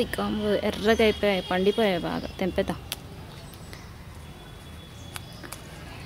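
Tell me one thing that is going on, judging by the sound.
Leaves rustle softly as a hand picks peppers from a plant.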